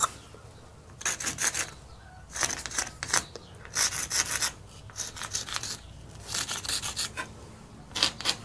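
A pencil scratches in short strokes on a brick wall.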